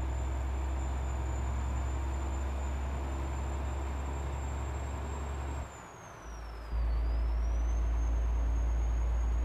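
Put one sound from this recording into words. A truck engine drones low and steady, briefly dropping away before returning louder.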